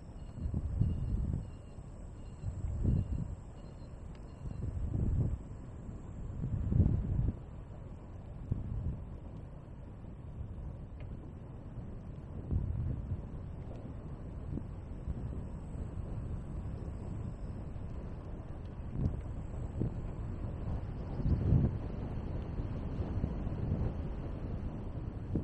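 Tyres roll steadily over a smooth paved path.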